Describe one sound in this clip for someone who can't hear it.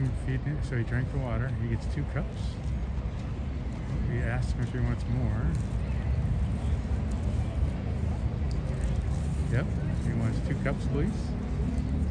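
A woman talks on a phone in the distance.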